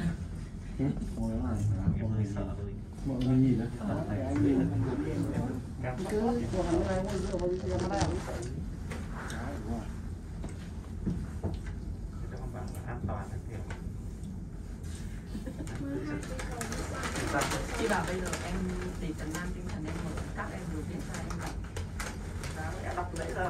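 A cable car cabin hums steadily as it glides along its cable.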